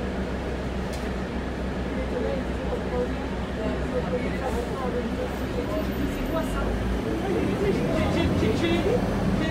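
A bus engine rumbles steadily while the bus drives along.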